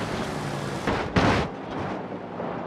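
A car smashes into wreckage with a loud crunch.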